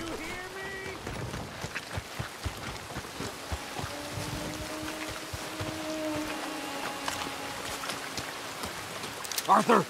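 Boots squelch through mud in steady footsteps.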